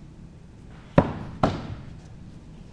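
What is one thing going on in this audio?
An axe thuds sharply into a wooden target.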